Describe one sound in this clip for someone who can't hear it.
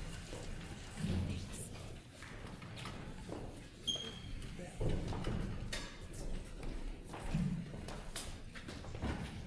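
Footsteps thud on a wooden stage in a large hall.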